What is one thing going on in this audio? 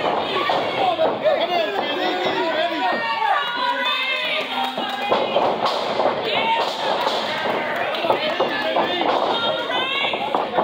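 A crowd of spectators chatters and shouts.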